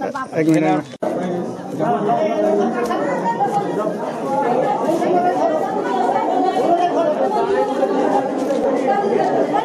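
A crowd of men and women talk loudly over one another close by.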